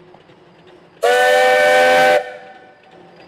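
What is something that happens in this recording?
A steam locomotive's whistle blows loudly.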